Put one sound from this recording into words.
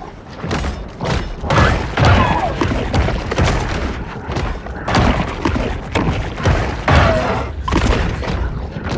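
Underwater rumbling and bubbling fill the air.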